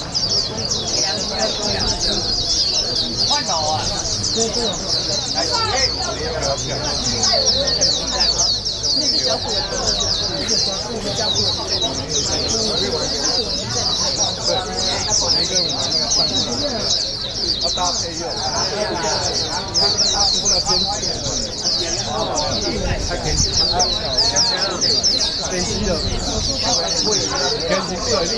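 Men talk in the background.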